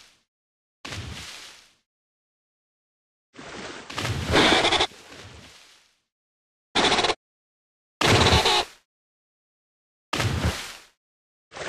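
A shark chomps and splashes through water in short bursts.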